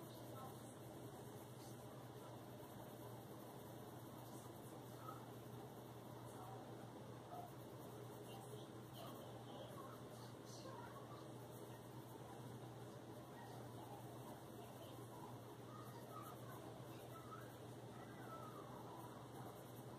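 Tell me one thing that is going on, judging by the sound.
A colored pencil scratches softly on paper.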